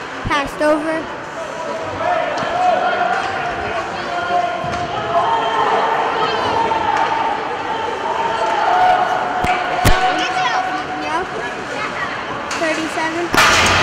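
Ice skates scrape and carve across an ice rink.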